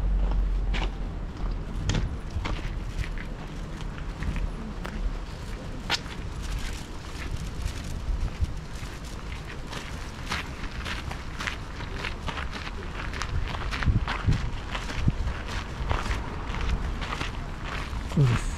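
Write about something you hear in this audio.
Footsteps crunch and scuff on a gravel path close by.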